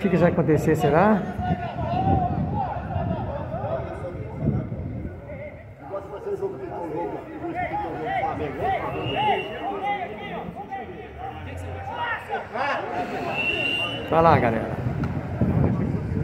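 Men shout and call to each other outdoors.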